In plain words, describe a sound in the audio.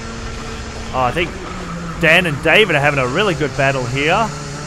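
Several kart engines whine and rev as karts pass nearby outdoors.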